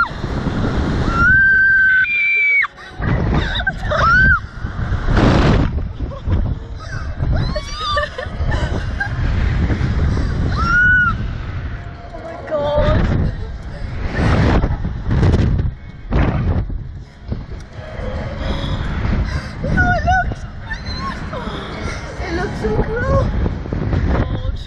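A second teenage girl gasps and laughs on the ride.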